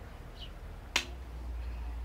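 A bowstring snaps sharply into place.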